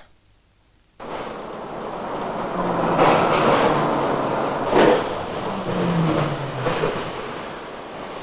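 A subway train rumbles along a platform.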